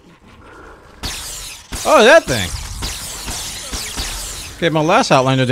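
Electric zaps crackle from a game.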